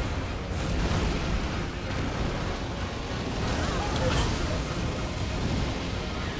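A huge beast roars.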